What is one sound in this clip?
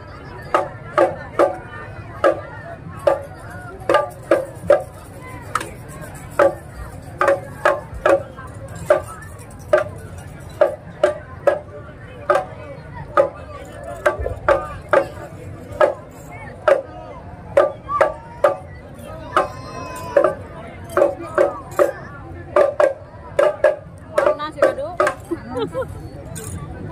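A marching band plays metallophones in sharp, ringing beats outdoors.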